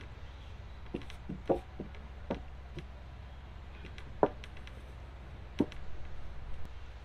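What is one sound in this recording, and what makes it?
Wooden timbers knock and thump.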